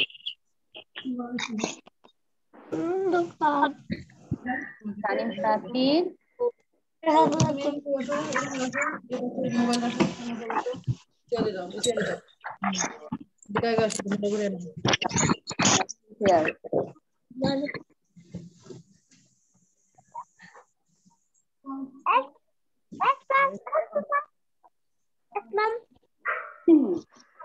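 Children talk and call out over an online call.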